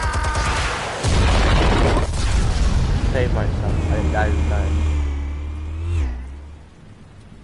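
A car engine roars as it races and crashes.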